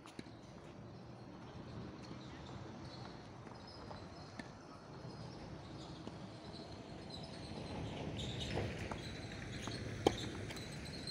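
A tennis ball is hit with a racket with a sharp pop.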